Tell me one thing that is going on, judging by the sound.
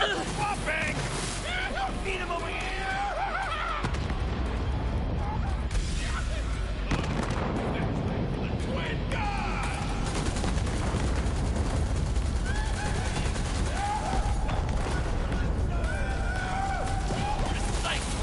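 Gunfire and laser blasts crackle in rapid bursts.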